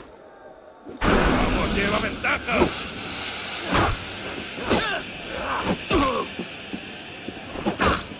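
A smoke bomb bursts with a dull whoosh and hiss.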